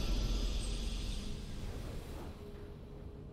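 A triumphant victory fanfare plays loudly, then fades away.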